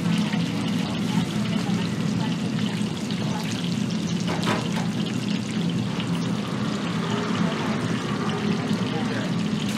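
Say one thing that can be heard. Hands squelch and slap through thick, wet batter in a metal bowl.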